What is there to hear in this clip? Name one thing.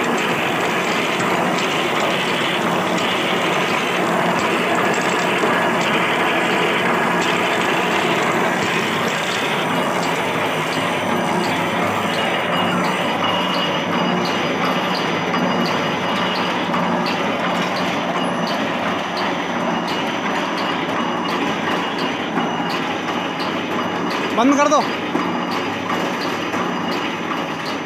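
A machine clatters and rattles loudly and steadily.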